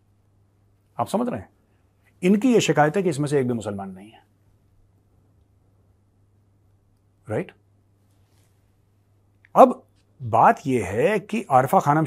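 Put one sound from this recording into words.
A man speaks calmly and clearly into a close microphone, with pauses between phrases.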